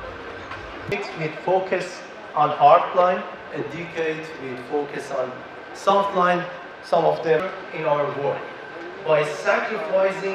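A young man speaks calmly and clearly into a close microphone.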